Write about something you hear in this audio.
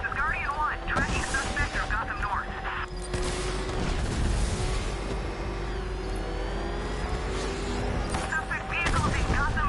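Loud explosions and crashing impacts burst out.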